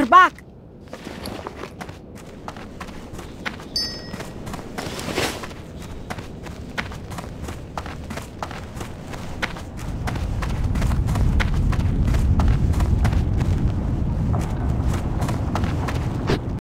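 Footsteps patter quickly on a hard stone floor.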